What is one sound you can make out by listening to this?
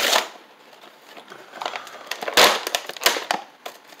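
Cardboard packaging tears open.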